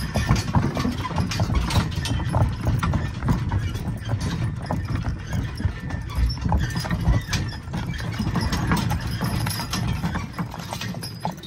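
Wagon wheels rumble over wooden boards.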